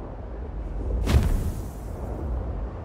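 A sudden whoosh of rushing air sweeps past.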